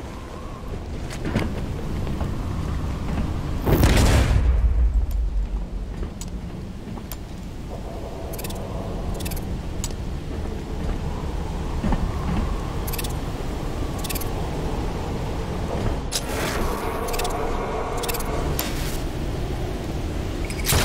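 Wind and rain rush steadily outdoors.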